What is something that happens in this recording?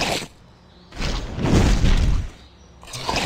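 A fiery blast whooshes and roars.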